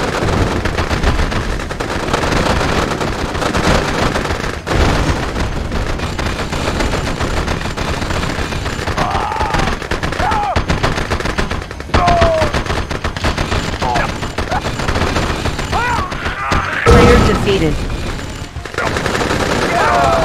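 Explosions and gunfire rumble in a battle.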